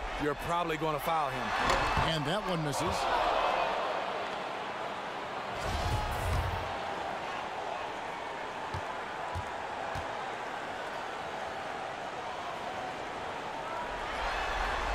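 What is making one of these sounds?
A large crowd murmurs and cheers in an echoing arena.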